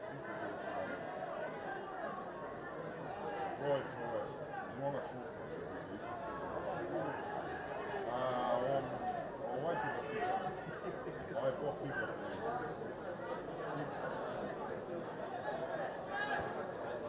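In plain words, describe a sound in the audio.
Voices of a small crowd murmur across an open stadium.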